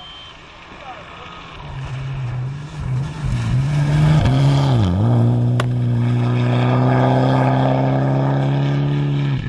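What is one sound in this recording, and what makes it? A turbocharged four-cylinder rally car approaches at full throttle on gravel, roars past and drops in pitch as it speeds away.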